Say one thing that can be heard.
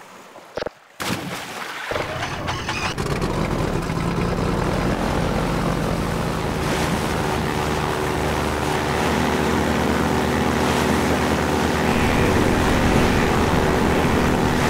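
An airboat engine roars steadily.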